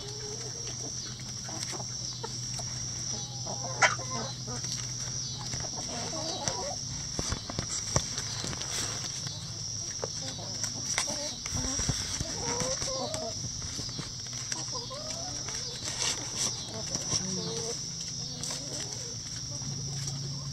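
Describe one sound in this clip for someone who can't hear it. Hens cluck and warble softly close by.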